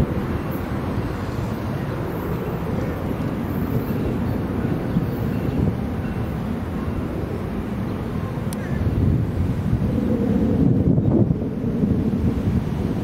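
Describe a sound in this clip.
A train engine rumbles steadily in the distance as it passes.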